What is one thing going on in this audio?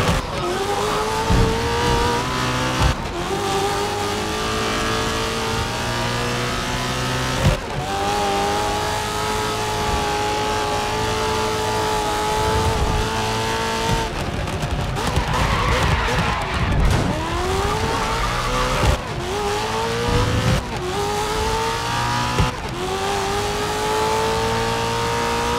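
A racing car engine roars and climbs in pitch, dropping briefly at each gear change.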